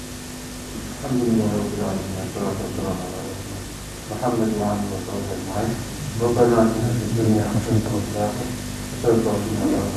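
A man speaks slowly and calmly into a clip-on microphone, close by.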